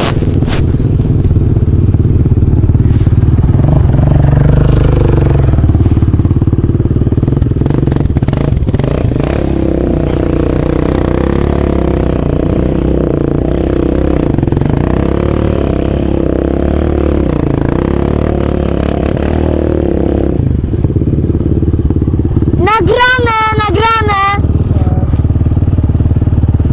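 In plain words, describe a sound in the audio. A quad bike engine rumbles and roars close by.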